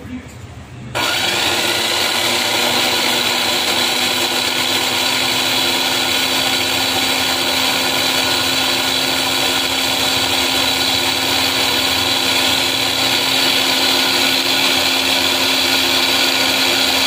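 A blender motor whirs loudly and steadily, grinding.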